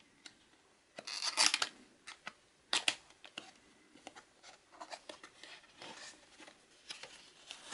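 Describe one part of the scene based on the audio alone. Cardboard slides and taps as a box lid is worked open.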